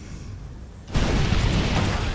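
Guns fire rapidly in a loud battle.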